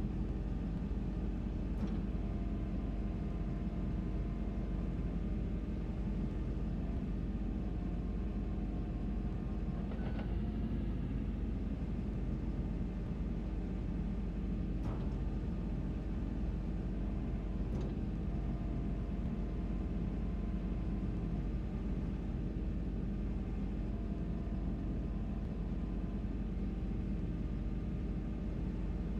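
Hydraulics whine as an excavator arm swings.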